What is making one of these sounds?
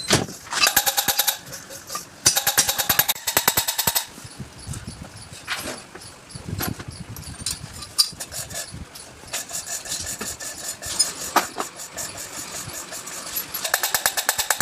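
Metal tools tap and scrape against a metal engine part in rapid bursts.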